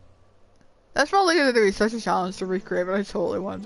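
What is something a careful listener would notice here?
A young girl speaks quickly in a high, excited voice.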